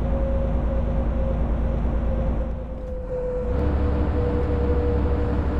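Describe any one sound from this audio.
A diesel coach engine drones while cruising on a highway.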